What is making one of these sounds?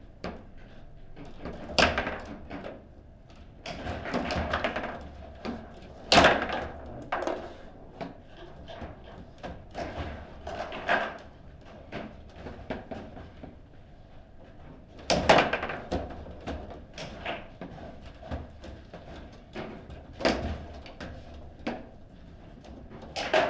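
Foosball rods rattle and thud as players spin and slide them.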